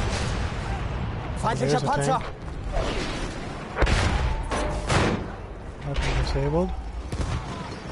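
A man talks into a microphone.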